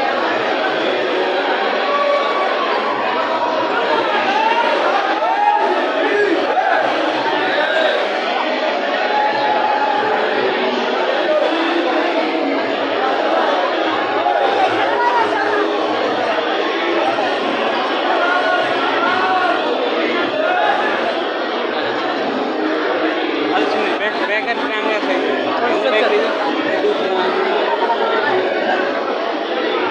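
A crowd of men and women chatter loudly close by, in a busy echoing space.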